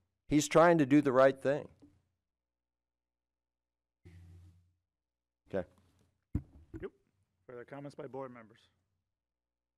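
A middle-aged man speaks calmly into a microphone, in short phrases with pauses.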